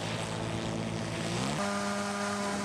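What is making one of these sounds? A small engine revs up and its pitch rises.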